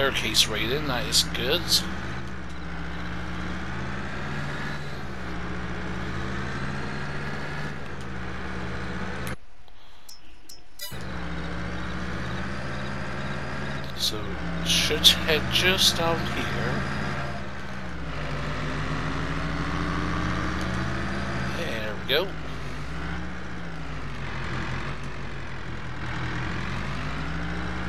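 A truck engine drones steadily, its pitch rising and falling as it drives.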